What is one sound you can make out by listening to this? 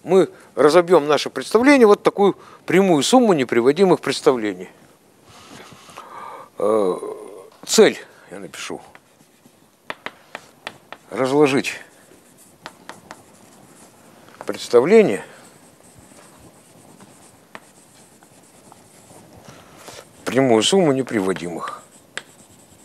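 An elderly man lectures in a steady voice, in an echoing hall.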